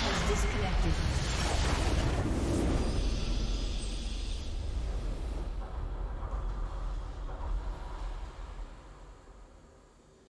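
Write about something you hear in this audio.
A triumphant orchestral fanfare swells and slowly fades.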